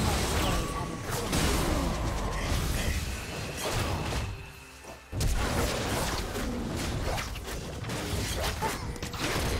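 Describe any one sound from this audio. Magic blasts and hits crackle and thump in a fast fight.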